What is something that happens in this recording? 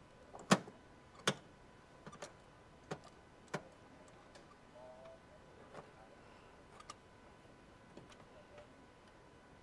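A metal wrench clicks and clinks against engine parts.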